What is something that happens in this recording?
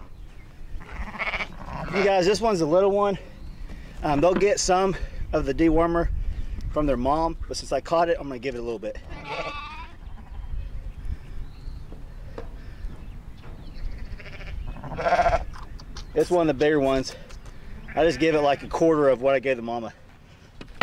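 A man speaks calmly and clearly, close by, outdoors.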